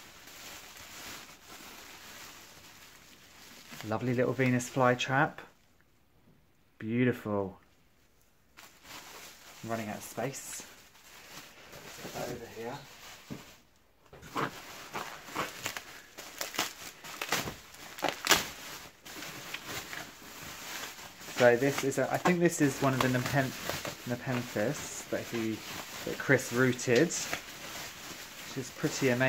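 Bubble wrap crinkles and rustles.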